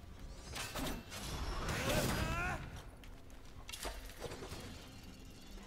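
A sword swishes and clangs in a video game.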